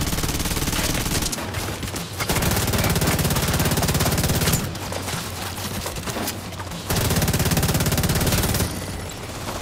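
An automatic rifle fires rapid bursts at close range.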